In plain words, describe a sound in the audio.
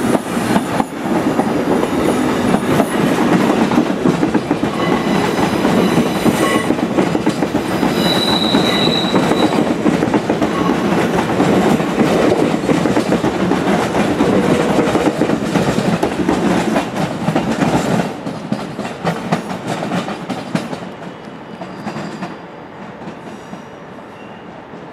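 A train rumbles past close by, its wheels clattering on the rails.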